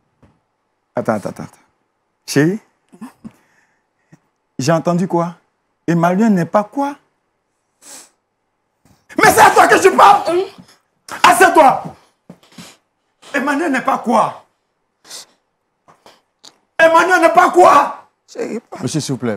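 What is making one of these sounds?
A man speaks with animation, raising his voice.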